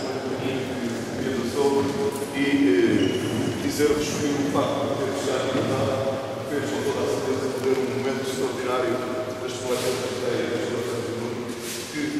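A man speaks loudly and calmly in a large echoing hall.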